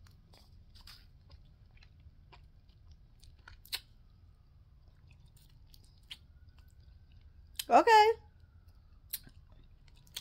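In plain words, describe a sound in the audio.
A woman crunches a cracker as she chews.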